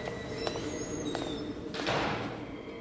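Footsteps thud on creaking wooden stairs.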